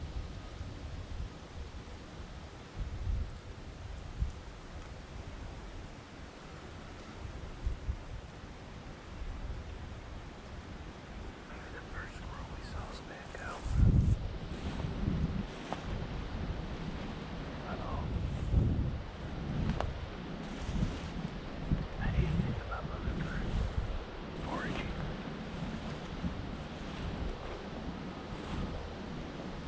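Wind blows and rustles through the trees outdoors.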